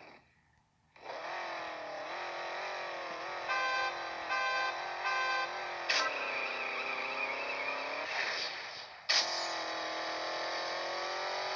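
A car engine revs loudly and roars as it speeds up through the gears.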